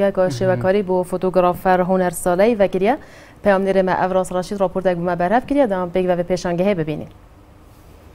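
A young woman speaks clearly and with animation into a microphone.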